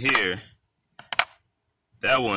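A cartridge clicks into a pistol magazine.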